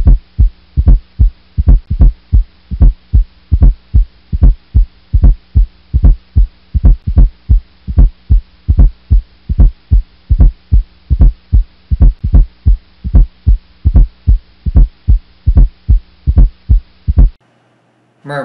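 A heart beats in a steady, regular thumping rhythm.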